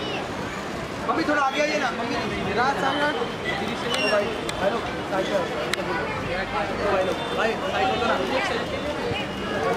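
Several men shout and call out loudly, close by.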